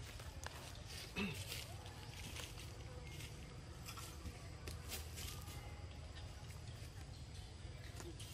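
A young macaque bites and chews soft fruit.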